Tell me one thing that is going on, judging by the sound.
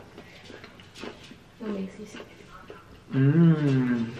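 A young man bites and chews food close to a microphone.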